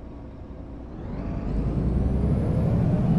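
A bus engine revs up, rising in pitch.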